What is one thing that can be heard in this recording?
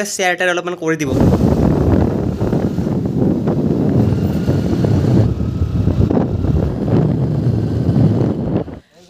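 A scooter engine rumbles steadily while riding.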